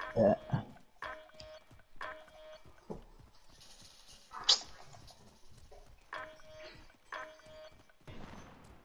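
A warning tone beeps repeatedly.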